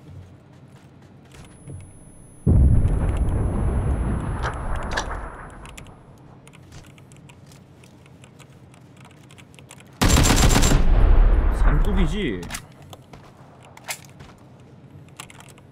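Footsteps thud quickly on dry ground.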